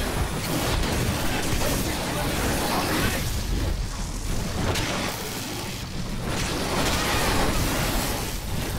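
Blows land in a fast brawl, with heavy thuds and crashes.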